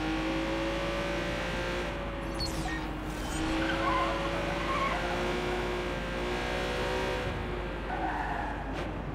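A sports car engine hums steadily at speed.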